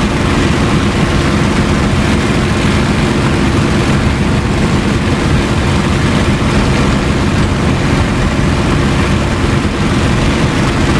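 A propeller engine drones steadily and loudly.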